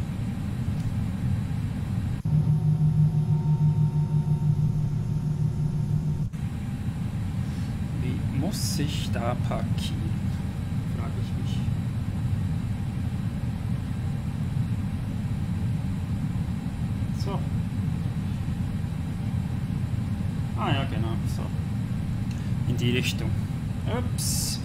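Jet engines hum with a steady low rumble as an airliner taxis.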